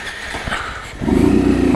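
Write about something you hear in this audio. A motorcycle engine starts and idles with a low rumble close by.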